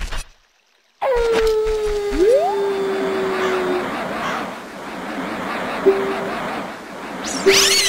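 A ghost lets out a long falling wail as it is defeated.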